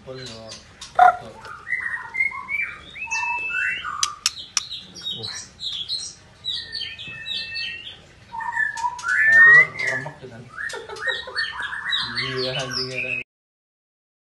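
A caged bird sings with quick, varied whistling chirps.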